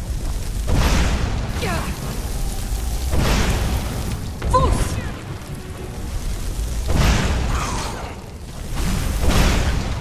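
Ice magic crackles and hisses.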